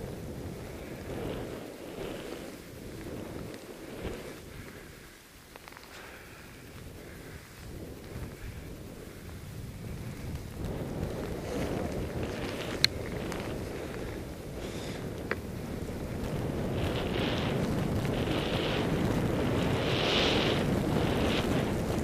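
Skis hiss and swish through deep powder snow.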